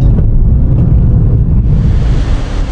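A car engine hums from inside the car.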